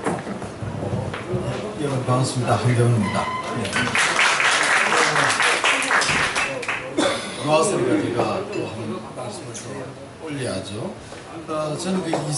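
A middle-aged man speaks into a microphone over loudspeakers in an echoing hall.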